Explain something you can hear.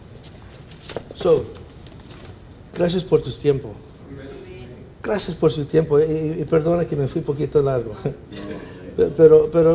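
A middle-aged man speaks with animation through a microphone in an echoing room.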